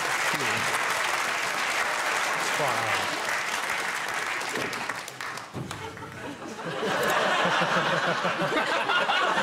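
A large studio audience laughs loudly.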